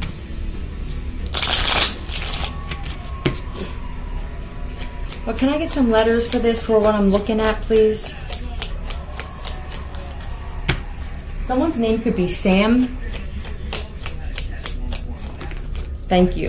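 Cards shuffle and tap softly.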